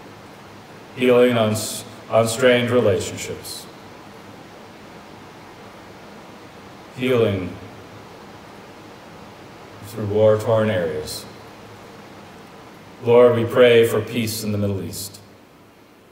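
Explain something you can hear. A man speaks slowly and calmly through a microphone in an echoing hall, pausing between phrases.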